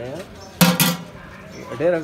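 A metal lid clanks against a large pot.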